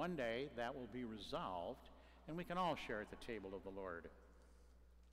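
A man sings a chant through a microphone in a large echoing hall.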